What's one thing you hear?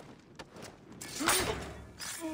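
A body is grabbed and struck in a brief scuffle.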